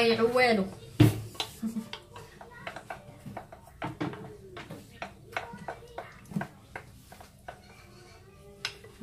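A spatula scrapes and taps against a plastic bowl.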